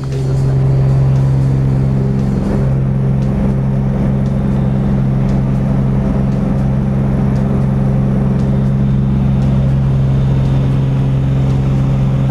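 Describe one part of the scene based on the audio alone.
Wind roars against the cabin.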